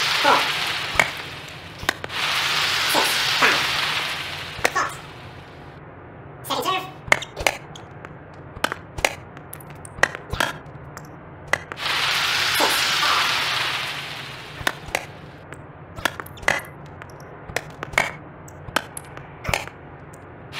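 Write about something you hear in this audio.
A tennis racket hits a ball with sharp pops.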